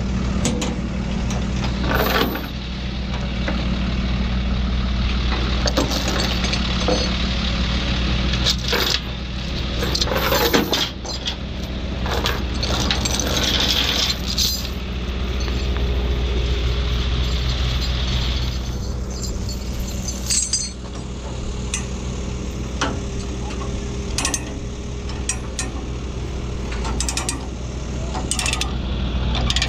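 An engine idles steadily nearby.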